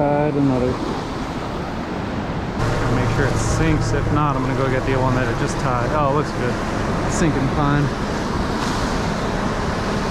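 Small waves break steadily along the beach.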